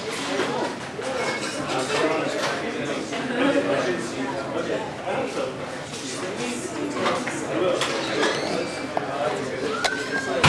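A drummer hits the drums.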